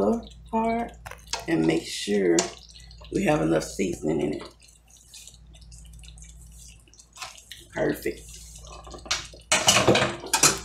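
A spoon stirs and scrapes thick sauce in a frying pan.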